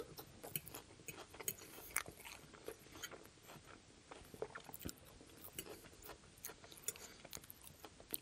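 A metal fork scrapes and clinks against a glass bowl.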